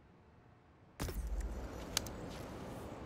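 Fingers tap rapidly on a keyboard.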